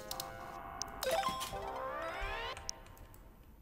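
An electronic chime rings out as a lock unlocks.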